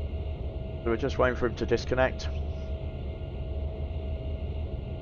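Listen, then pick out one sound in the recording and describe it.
Jet engines idle with a steady low hum.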